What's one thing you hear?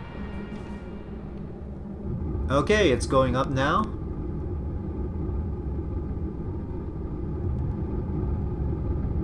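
Rocket engines roar with a deep, steady rumble that slowly grows louder.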